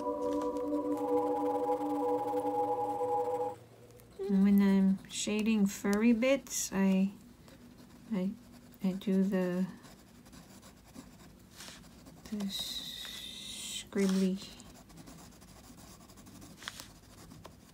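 A crayon scratches softly on paper.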